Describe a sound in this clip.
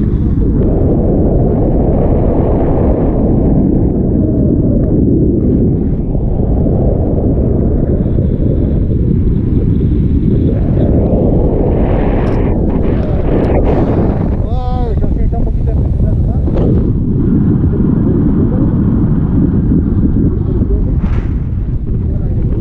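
Strong wind roars steadily over the microphone outdoors.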